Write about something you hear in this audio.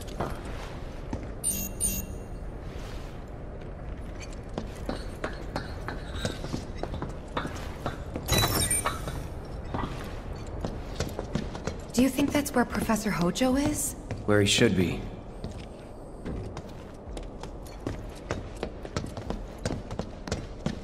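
Footsteps tap on a hard, echoing floor.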